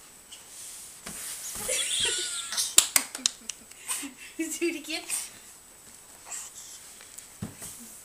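A baby giggles and squeals with delight.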